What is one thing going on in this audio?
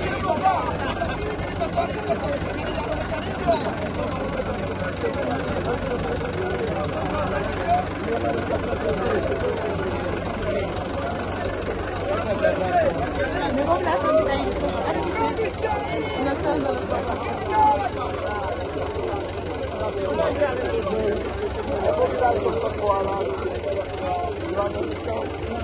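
A crowd of people talks and calls out outdoors.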